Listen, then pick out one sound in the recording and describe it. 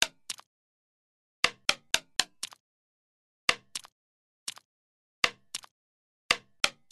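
A ball bounces with sharp, bright taps in quick, uneven bursts.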